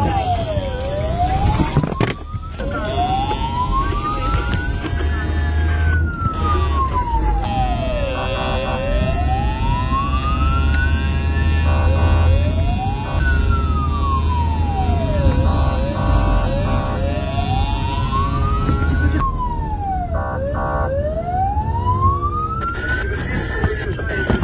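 A car engine hums as the car drives along.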